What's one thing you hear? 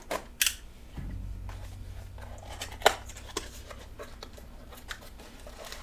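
Cardboard rustles and tears as hands open a box.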